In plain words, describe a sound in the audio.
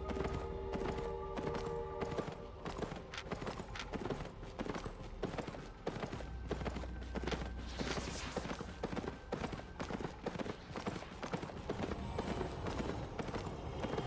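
Footsteps tap quickly on stone.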